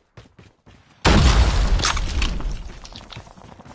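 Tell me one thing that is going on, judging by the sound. An explosion booms loudly nearby and rumbles away.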